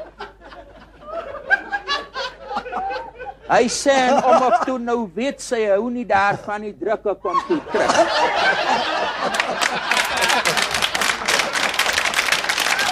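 A middle-aged man laughs heartily into a microphone.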